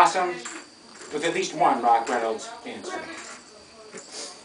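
An elderly man talks nearby in a cheerful voice.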